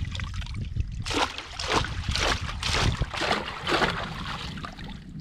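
Water splashes as a trap is pulled up out of shallow water.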